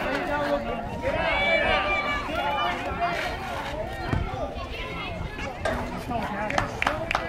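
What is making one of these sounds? Spectators cheer and shout from a distance outdoors.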